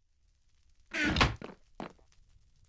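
A wooden chest creaks shut.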